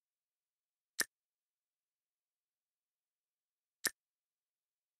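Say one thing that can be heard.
Game menu buttons click with short taps.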